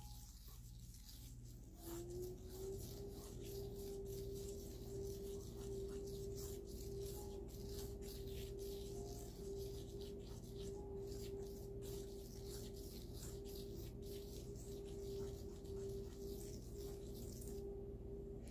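Fingers brush and scratch softly through fine sand.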